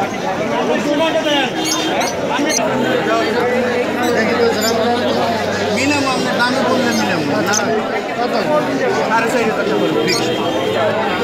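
Small caged birds chirp and twitter busily.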